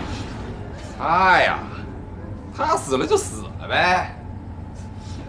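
A man speaks loudly and with emotion.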